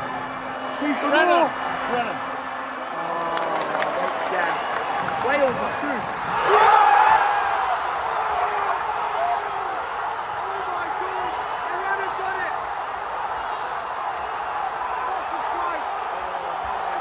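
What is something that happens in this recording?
A large stadium crowd roars and chants all around.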